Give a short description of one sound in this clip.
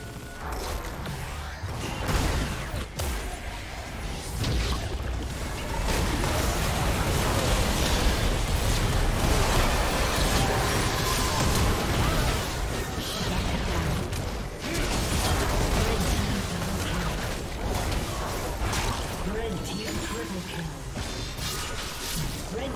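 Game spell effects whoosh, clash and explode in a busy fight.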